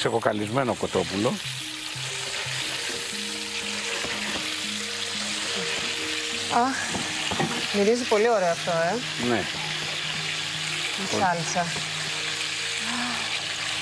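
Meat sizzles in hot oil in a frying pan.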